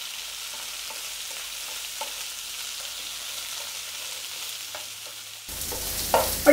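A wooden spatula stirs and scrapes vegetables in a frying pan.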